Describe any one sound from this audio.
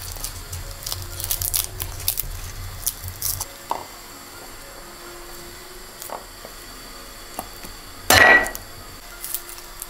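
Small hard pieces click and tap as fingers peel them.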